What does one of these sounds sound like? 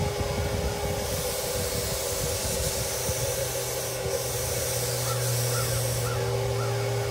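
A spray gun hisses in bursts.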